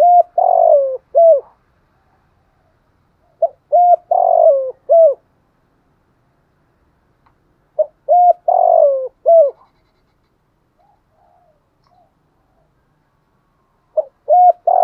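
A dove coos close by in repeated soft phrases.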